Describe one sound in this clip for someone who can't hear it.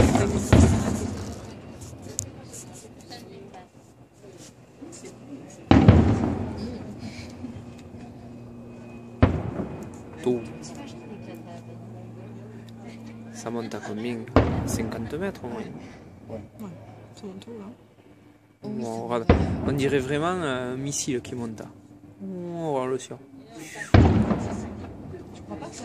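Fireworks crackle and sizzle faintly after the bursts.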